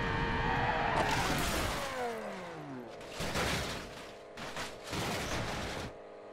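A car crashes and tumbles with loud crunching bangs.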